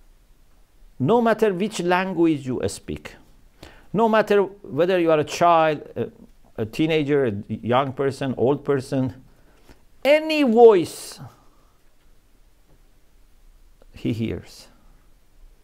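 A man speaks calmly and expressively into a close microphone, with long pauses.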